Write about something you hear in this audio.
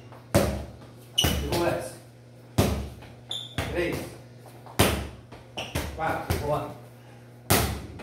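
A ball bounces hard on a tiled floor, echoing in a bare room.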